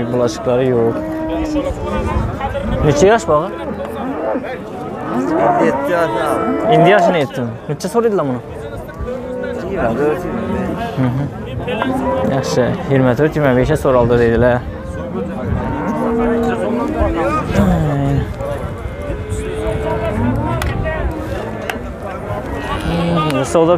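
A crowd of men talks all around, close and outdoors.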